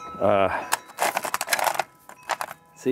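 Small stones clatter and click against each other.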